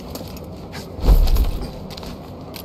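A heavy thud sounds as someone grabs a rope.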